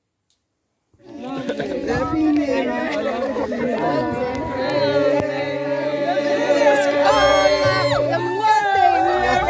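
A group of women and men laugh and chatter outdoors.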